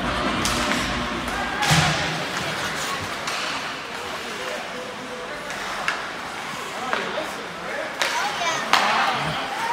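Hockey sticks clack sharply against the puck and the ice.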